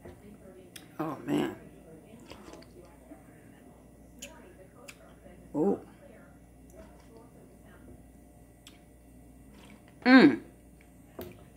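A woman slurps from a spoon.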